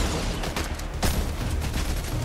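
A gun fires a few quick shots.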